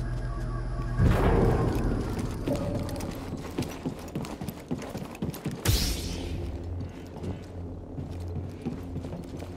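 Footsteps clatter on a metal floor.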